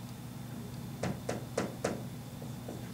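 A marker taps and squeaks on a whiteboard.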